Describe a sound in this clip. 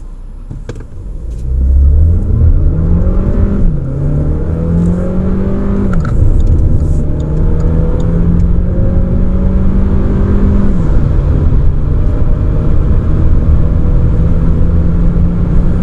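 A car engine roars as it accelerates hard, dipping in pitch at each gear change.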